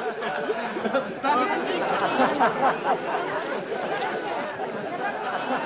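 A crowd of men and women chatter and call out loudly.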